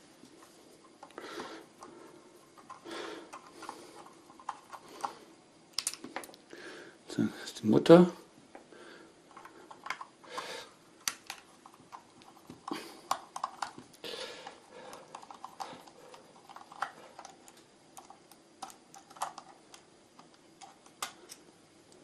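A screwdriver clicks and scrapes against plastic screws.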